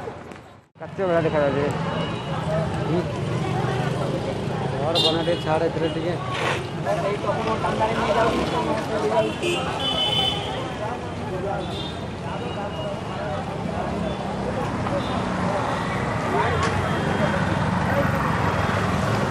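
Street traffic and crowd noise hum steadily outdoors.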